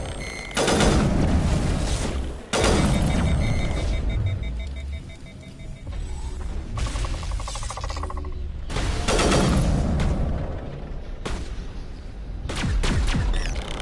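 Heavy gunshots boom in loud, sudden blasts that ring out.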